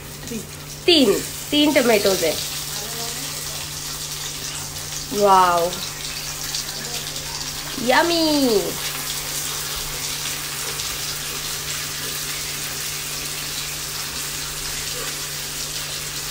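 Onions sizzle steadily in hot oil in a pan.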